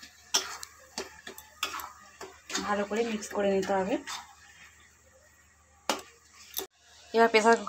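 A metal spoon scrapes and clinks against a metal pan.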